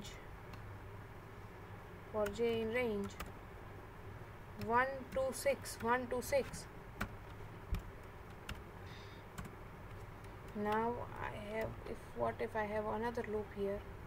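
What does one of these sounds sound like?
Keys click on a computer keyboard.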